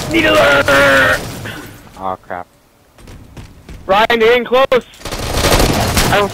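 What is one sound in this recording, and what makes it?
Gunfire crackles in short bursts.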